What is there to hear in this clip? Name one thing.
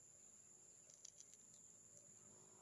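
A cat's claws scratch against tree bark.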